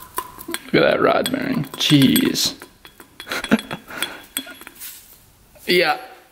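A connecting rod clicks as it is rocked by hand on a crankshaft.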